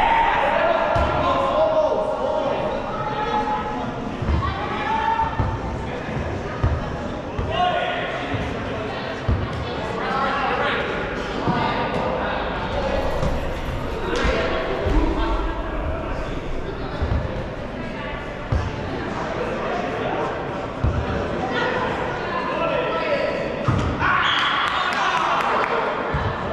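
Rubber balls thump on the floor and bounce.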